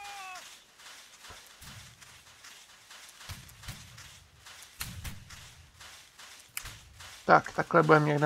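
Footsteps run across soft sand.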